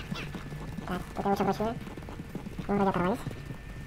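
A horse gallops, its hooves thudding on a dirt path.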